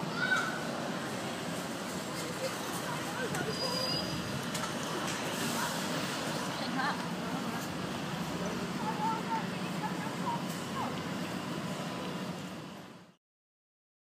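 City traffic rumbles steadily in the background outdoors.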